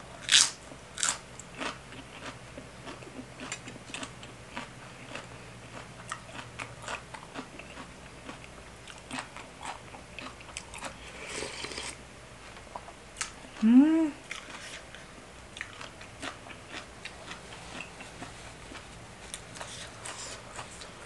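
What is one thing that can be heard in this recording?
A young woman chews crunchy food with wet smacking sounds close by.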